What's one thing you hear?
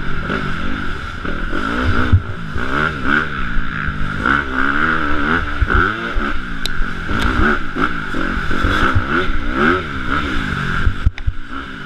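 A dirt bike engine revs up and down close by, shifting pitch constantly.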